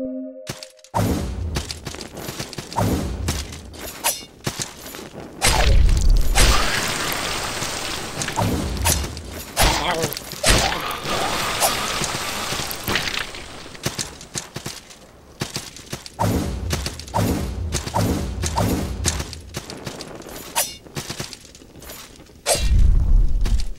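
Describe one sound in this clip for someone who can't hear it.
A large sword swings and strikes enemies with heavy thuds.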